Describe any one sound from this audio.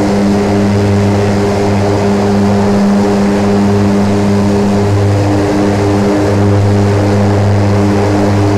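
A jet engine drones steadily with a low hum and rushing air.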